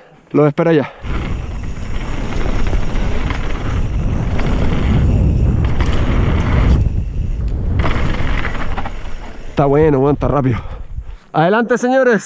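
Bike tyres rumble over a dirt trail with a rush of wind.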